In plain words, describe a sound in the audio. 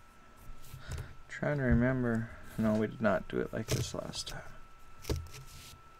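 A marker pen squeaks as it writes on cardboard.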